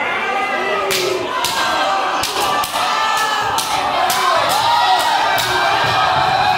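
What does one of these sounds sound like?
Wrestlers slap and strike each other with sharp smacks.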